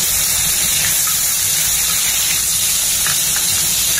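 Tomato pieces drop into sizzling oil.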